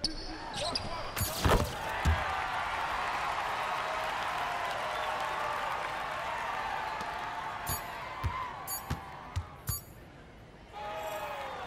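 A crowd cheers loudly and then fades.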